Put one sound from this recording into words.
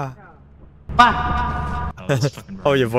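A young man shouts in surprise.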